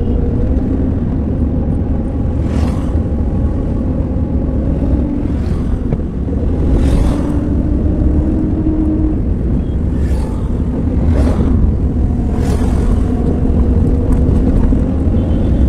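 Tyres roll over a paved road, heard from inside a car.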